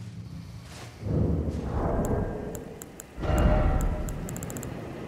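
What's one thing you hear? A soft whoosh sounds as a menu opens.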